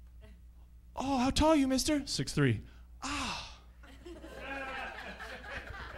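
A man speaks animatedly into a microphone, his voice rising into loud exclamations.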